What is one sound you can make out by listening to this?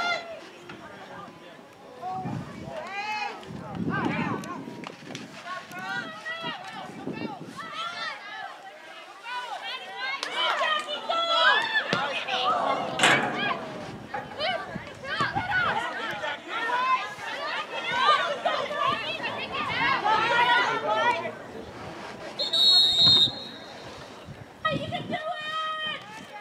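Girls shout and call out across an open field.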